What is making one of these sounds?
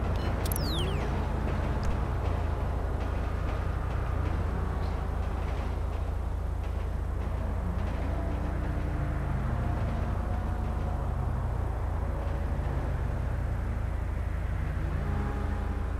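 A car engine hums steadily and rises and falls in pitch as it drives.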